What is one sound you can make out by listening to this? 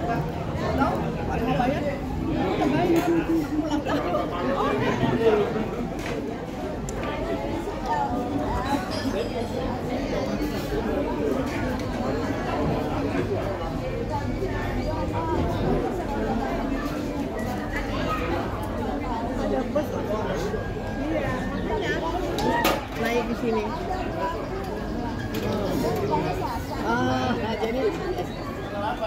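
Elderly women chat with animation close by.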